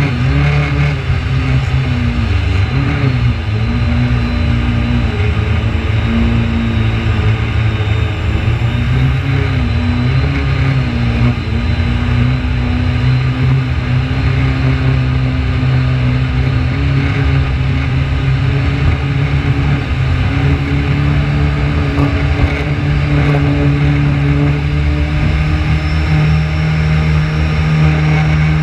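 A jet ski engine drones loudly up close, rising and falling in pitch.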